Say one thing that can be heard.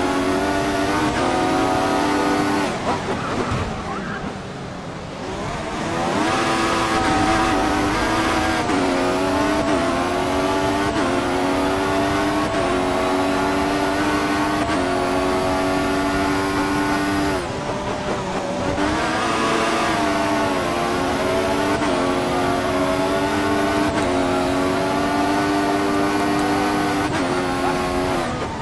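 A racing car engine screams at high revs, shifting up through the gears and dropping pitch when braking.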